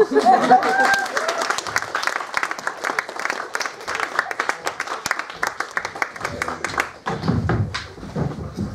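A crowd applauds with sharp, rapid claps.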